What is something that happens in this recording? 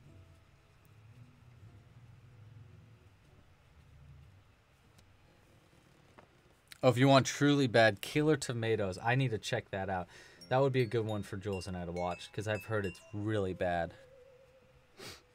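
A crochet hook clicks softly against yarn.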